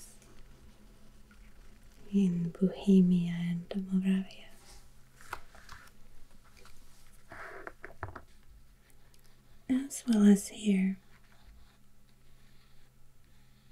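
A thin wooden stick scrapes and taps softly on paper.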